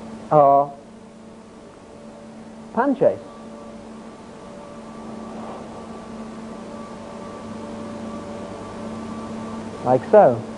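An electronic keyboard holds a steady low drone.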